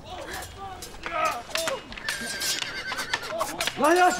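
A crowd of young men cheers and shouts loudly outdoors.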